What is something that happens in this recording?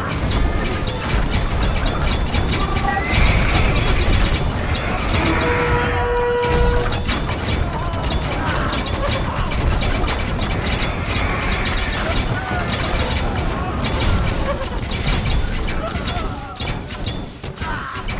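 Swords clash and clang in a busy battle.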